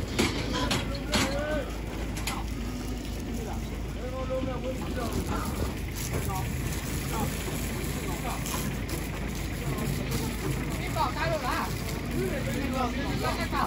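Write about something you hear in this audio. Pigs squeal and grunt close by.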